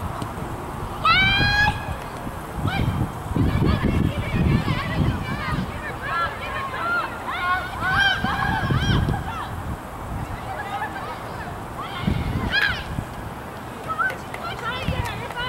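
Players shout to each other across an open field in the distance.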